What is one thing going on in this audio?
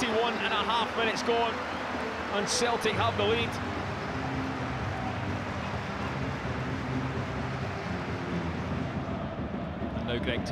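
A large stadium crowd cheers and roars outdoors.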